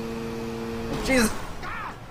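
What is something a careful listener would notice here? A motorcycle crashes with a sudden impact.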